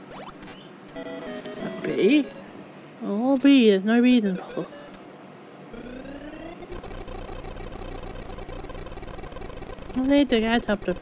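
Electronic game tones beep and chime.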